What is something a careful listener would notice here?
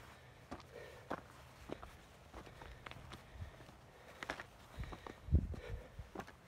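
Footsteps crunch and scrape on loose rocks.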